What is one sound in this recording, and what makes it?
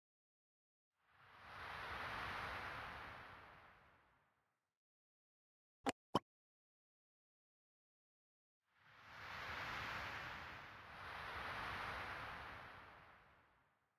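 A soft whooshing swells and fades away twice.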